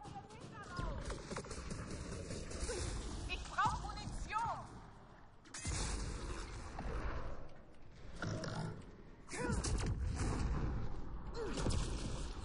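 Energy weapons fire in rapid, crackling bursts.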